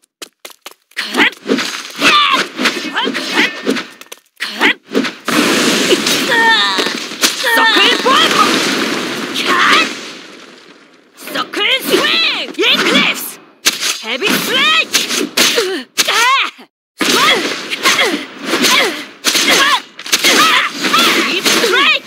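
Magic blasts burst and whoosh.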